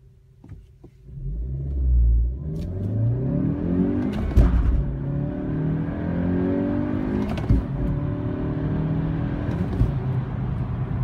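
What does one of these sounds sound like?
A turbocharged four-cylinder car engine accelerates hard through the gears of a manual gearbox, its pitch climbing and dropping at each shift.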